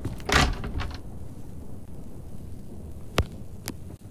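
A wooden wardrobe door creaks shut with a soft knock.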